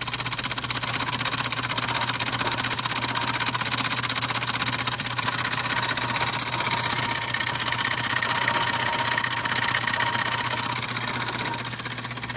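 A machine grinds and rattles steadily with a rapid clatter.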